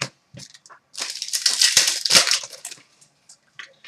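A foil card pack crinkles as it is torn open.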